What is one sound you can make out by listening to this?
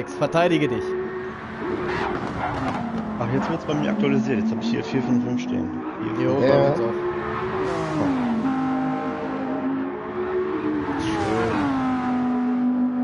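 Racing car engines roar and whine, rising and falling as they change gear.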